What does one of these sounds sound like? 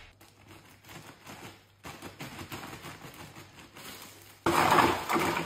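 Scissors snip through a plastic bag.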